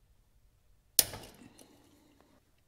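A metal wrench clanks sharply against engine parts.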